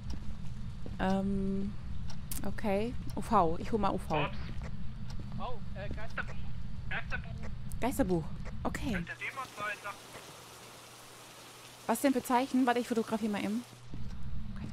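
A woman talks and laughs close to a microphone, with animation.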